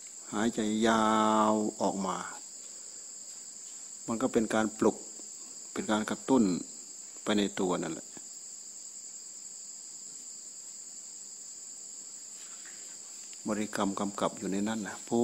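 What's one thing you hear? An elderly man speaks in short bursts, close by.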